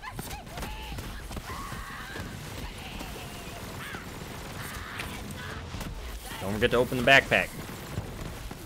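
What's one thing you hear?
Explosions burst close by.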